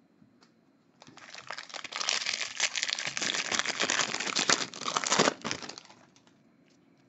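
A foil wrapper crinkles and tears loudly as it is ripped open.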